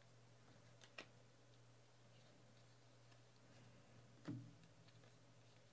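Trading cards flick and slap softly as they are shuffled by hand.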